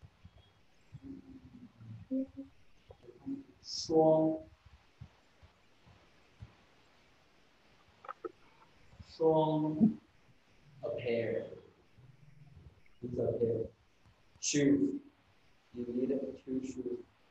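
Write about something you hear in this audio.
A man speaks slowly and clearly nearby, in short phrases with pauses.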